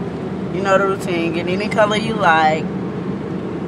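A young woman sings close up.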